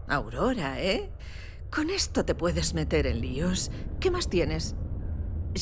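A woman speaks with surprise, up close.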